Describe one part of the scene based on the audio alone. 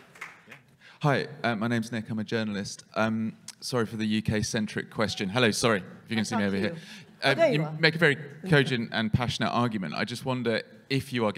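A man asks a question calmly through a microphone.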